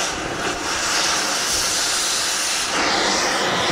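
An angle grinder whines loudly against metal.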